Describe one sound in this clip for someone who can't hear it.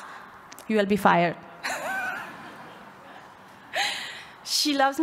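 A young woman speaks into a microphone, heard through a loudspeaker in a large room.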